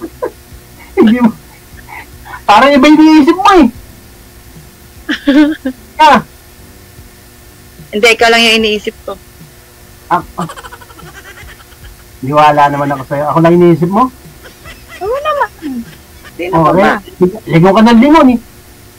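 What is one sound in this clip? A middle-aged woman laughs and chats over an online call.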